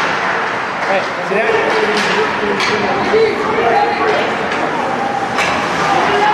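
Young players shout in an echoing rink.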